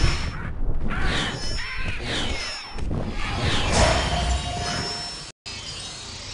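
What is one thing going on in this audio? Game cards whoosh and chime as they flip over.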